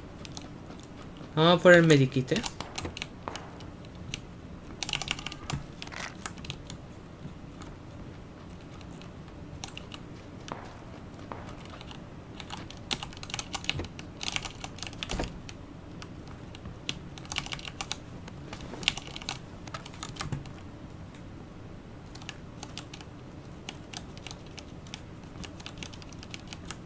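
Footsteps patter quickly on wooden floors and ground.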